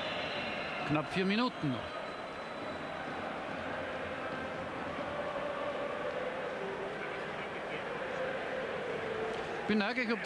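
A large crowd in a stadium roars and chants steadily.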